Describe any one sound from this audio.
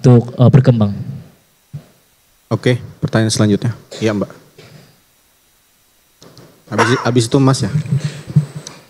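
A young man speaks calmly into a microphone, pausing between phrases.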